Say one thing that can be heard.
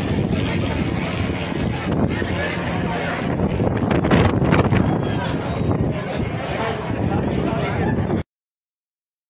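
A crowd of people chatter and shout outdoors.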